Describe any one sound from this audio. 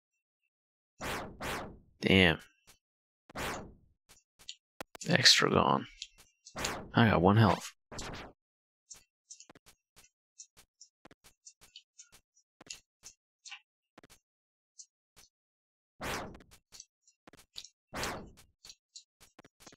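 A young man speaks with animation close to a headset microphone.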